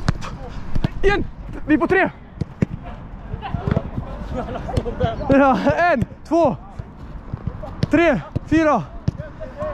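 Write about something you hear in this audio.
Young men shout loudly to each other outdoors.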